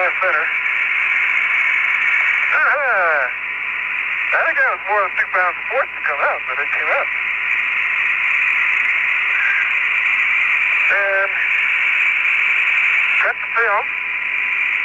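A man speaks in short bursts over a crackly radio link.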